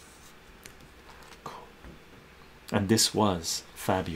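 Paper pages rustle as a page of a booklet is turned.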